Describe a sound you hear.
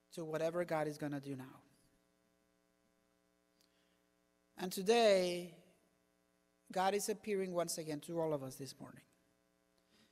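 A man speaks calmly into a microphone, with pauses, in a reverberant hall.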